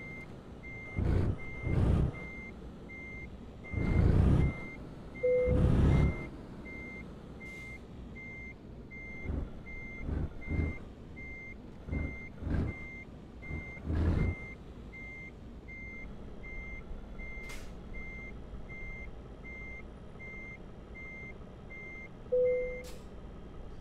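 A reversing alarm beeps over and over at an even pace.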